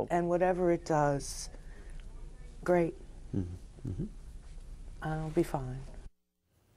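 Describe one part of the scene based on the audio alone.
An older woman speaks in short, halting bursts close to a microphone.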